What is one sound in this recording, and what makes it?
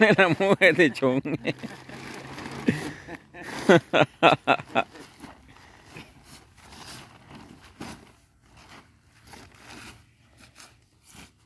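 Wood chips rustle into a sack.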